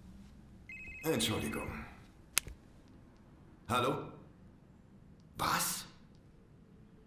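A middle-aged man speaks tersely into a phone.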